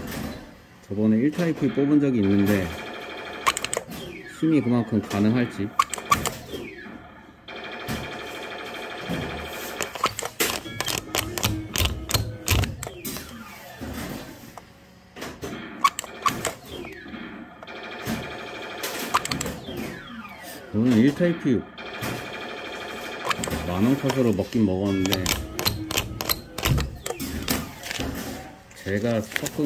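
A claw machine's motor whirs as the claw moves up and down.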